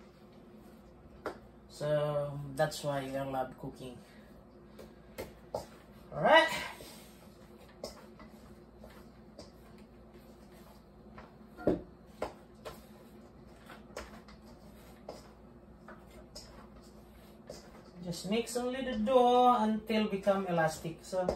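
Hands knead dough in a metal bowl.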